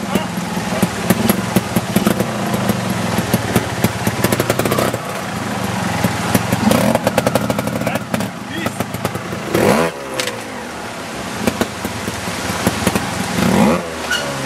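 A motorcycle engine putters and revs close by.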